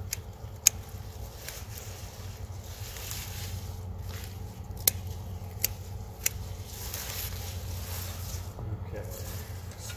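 Leaves rustle as plants are pulled up by hand.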